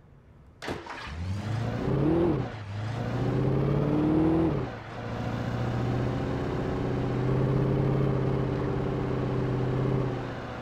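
A truck engine starts and revs up as the truck drives off, shifting gears.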